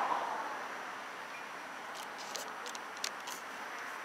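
Men talk quietly at a distance outdoors.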